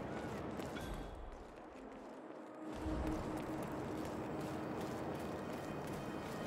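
Footsteps tread on stone and pavement.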